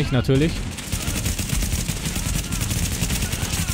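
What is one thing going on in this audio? Rapid gunshots crack nearby.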